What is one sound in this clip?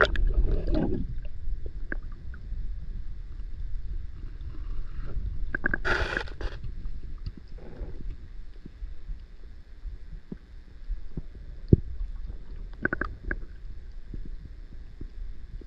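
A muffled underwater rumble goes on with soft knocks.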